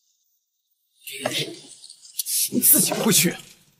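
Another young man speaks sharply, close by.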